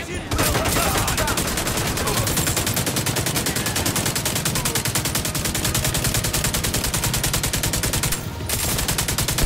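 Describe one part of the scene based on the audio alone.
A rifle fires in rapid, steady bursts.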